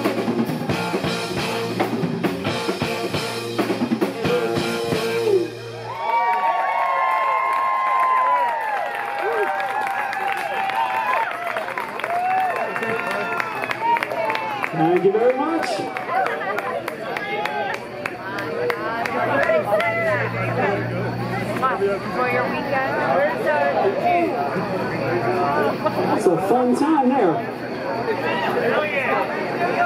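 A live rock band plays loudly outdoors.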